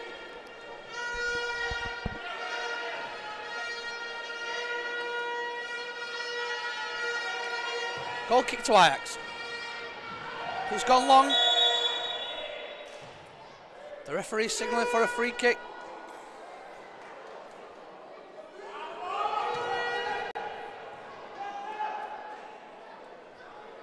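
A crowd chants and cheers in a large echoing hall.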